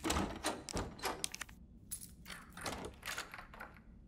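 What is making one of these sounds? A key clicks and turns in a door lock.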